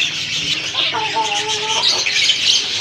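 A chicken lets out a drawn-out call.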